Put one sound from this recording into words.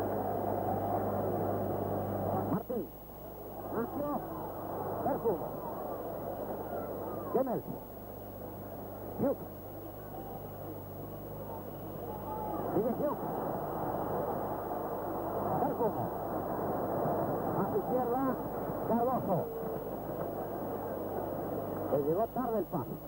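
A large crowd roars and murmurs in a stadium.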